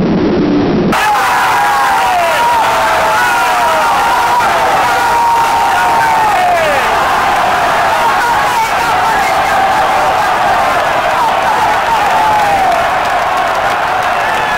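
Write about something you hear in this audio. A crowd whistles shrilly.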